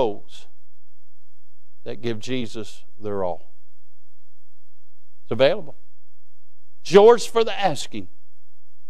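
A man preaches with animation through a microphone, pausing between phrases.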